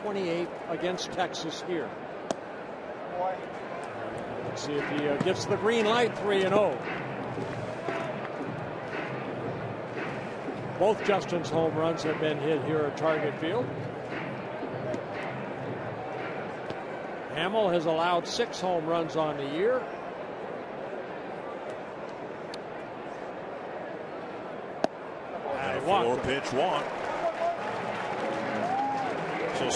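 A large stadium crowd murmurs.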